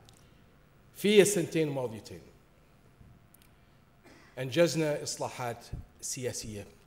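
A man speaks formally into a microphone in a large hall.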